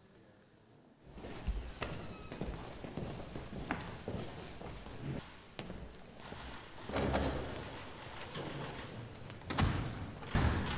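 Footsteps shuffle and knock on a hard floor.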